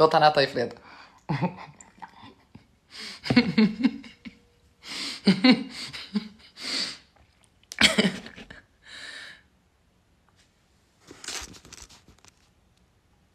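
A young woman talks in short bursts close to a microphone.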